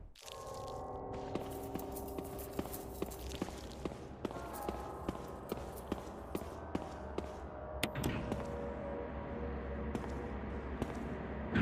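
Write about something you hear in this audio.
Quick footsteps run on a hard tiled floor.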